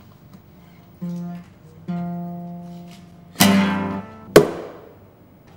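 A guitar is strummed softly, a few notes ringing.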